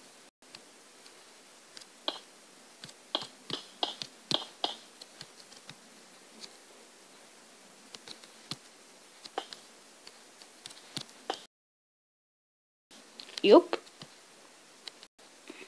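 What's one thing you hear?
Blocks thud softly as they are placed, one after another.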